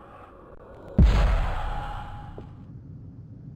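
A heavy thud lands with a booming echo.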